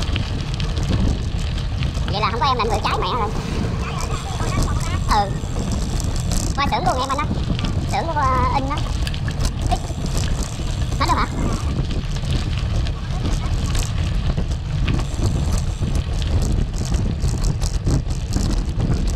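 Bicycle tyres roll over a rough dirt road.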